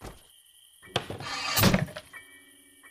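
An object drops and lands with a thump on the floor.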